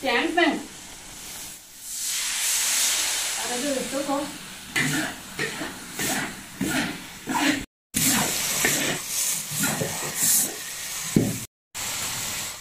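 A spatula scrapes and clanks against a wok.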